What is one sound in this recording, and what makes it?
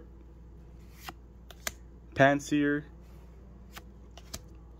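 Cards slide and flick softly as they are swapped by hand.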